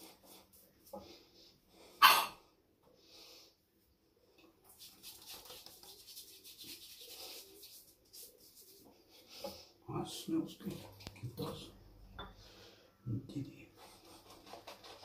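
A man rubs shaving lather over his stubbled face with soft, scratchy strokes.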